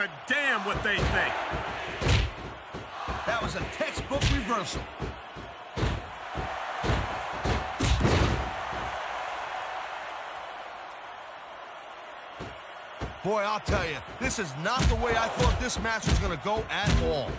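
Heavy thuds and slams land as wrestlers hit each other.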